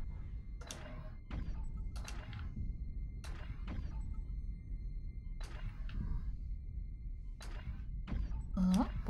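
A heavy gun fires in sharp, repeated shots.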